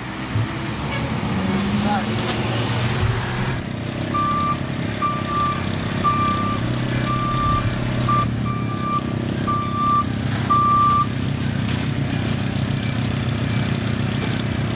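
City traffic rumbles steadily.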